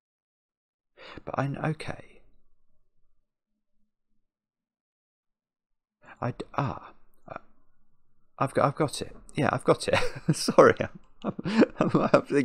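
A middle-aged man talks with animation, close to a microphone.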